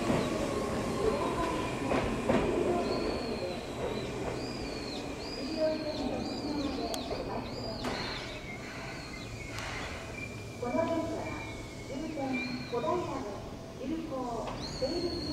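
An electric train hums steadily while standing at a platform.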